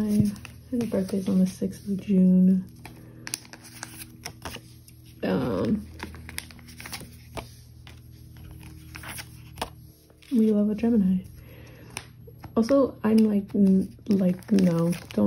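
Plastic sleeves crinkle and rustle as fingers handle cards.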